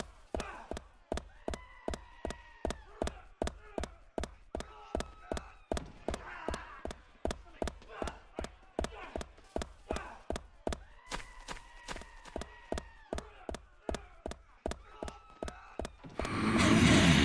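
Quick footsteps run steadily on pavement.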